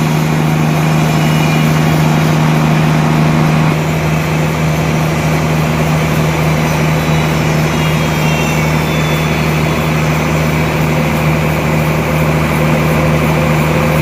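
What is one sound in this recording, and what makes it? A large sawmill machine hums loudly and steadily.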